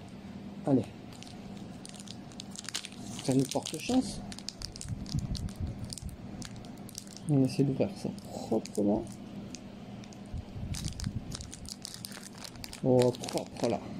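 A foil wrapper crinkles and tears as it is opened by hand.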